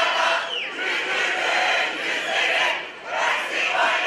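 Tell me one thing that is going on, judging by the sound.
A man speaks loudly through a microphone and loudspeakers, outdoors.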